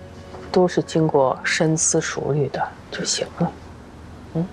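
A woman speaks calmly and gently up close.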